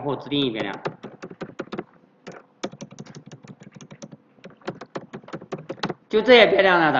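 Keys clatter rapidly on a computer keyboard.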